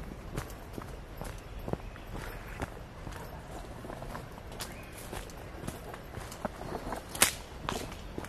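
Leafy plants brush and rustle against the walker.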